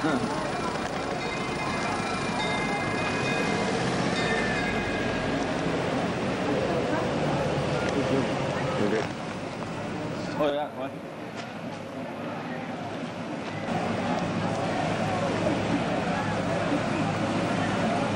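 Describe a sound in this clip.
An old fire engine's motor rumbles as it drives slowly past.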